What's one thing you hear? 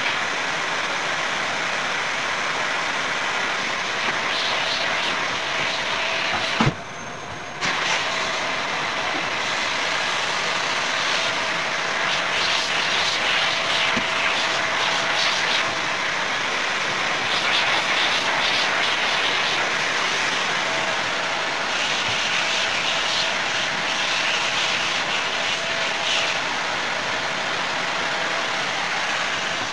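A vacuum cleaner hums steadily close by.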